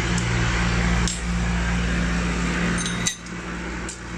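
Small metal parts clink in a metal tray.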